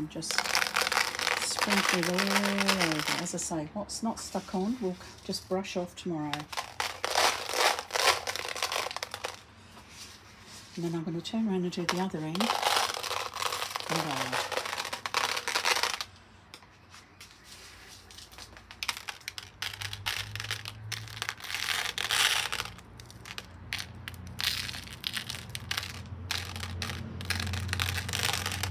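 Fingertips press pieces of crushed glass, which clink and crunch against each other.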